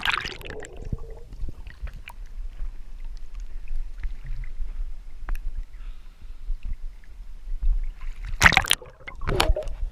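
Muffled water sloshes and gurgles underwater.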